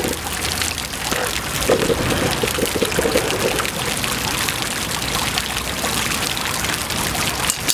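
Water trickles and splashes as a man's hands dip into a shallow pool.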